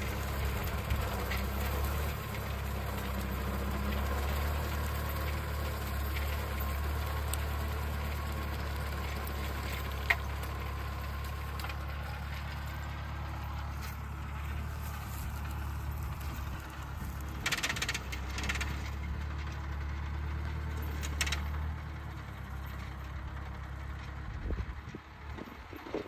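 A tractor engine drones steadily nearby.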